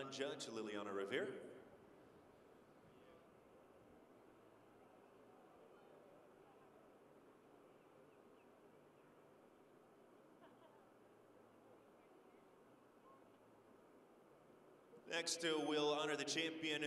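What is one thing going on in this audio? A crowd murmurs softly in a large open arena.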